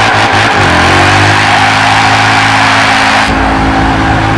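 Tyres screech and squeal on tarmac.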